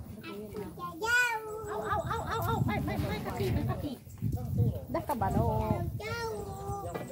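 Children chatter in high voices nearby.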